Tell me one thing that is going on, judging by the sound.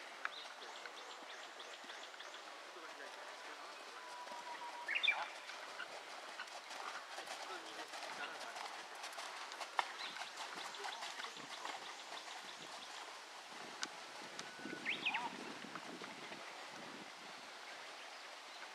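A horse's hooves thud softly on sand as it canters.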